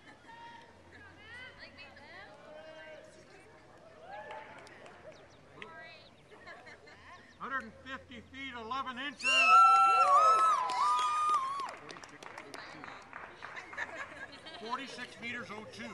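Young women and men chat and call out at a distance outdoors.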